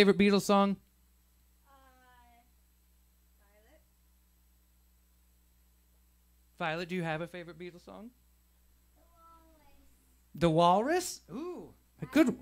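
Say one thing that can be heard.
A young girl talks and laughs nearby.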